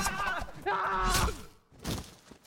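A body thuds heavily onto the ground.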